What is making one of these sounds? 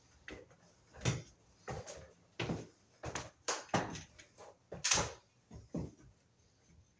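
A man's hands knock and click against a metal fitting close by.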